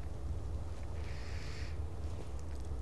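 A spore creature bursts with a short hissing puff.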